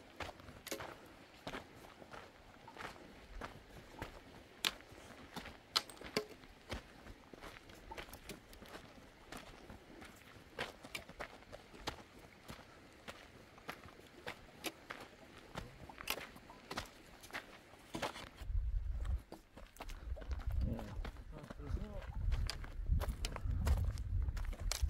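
Footsteps crunch on a gravelly dirt path.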